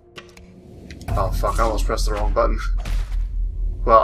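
A blade slashes and strikes with a sharp swish.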